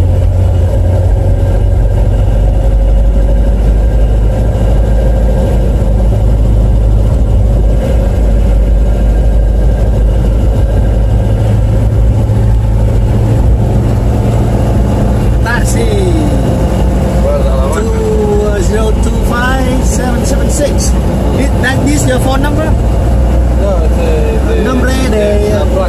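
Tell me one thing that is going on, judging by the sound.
The engine of a 1955 Chevrolet rumbles low, heard from inside the car as it cruises along a paved road.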